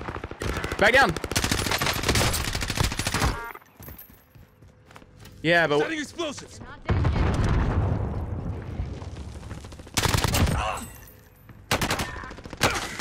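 An automatic rifle fires rapid bursts in a video game.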